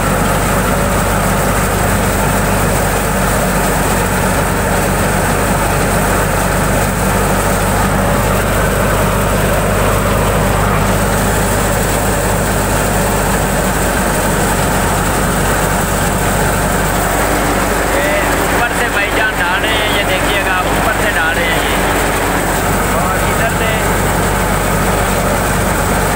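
A threshing machine engine drones loudly and steadily.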